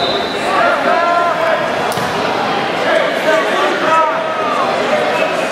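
Wrestlers' bodies rub and thump on a mat as they grapple.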